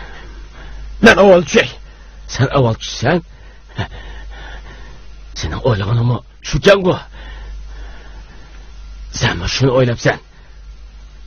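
A middle-aged man speaks with emotion, close by.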